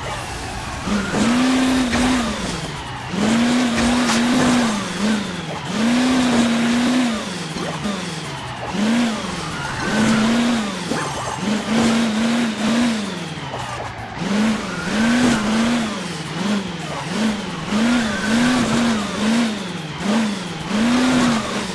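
Game coins chime as they are collected.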